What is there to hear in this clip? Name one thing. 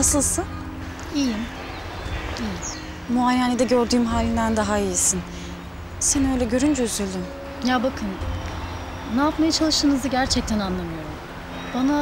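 A second young woman talks calmly in reply.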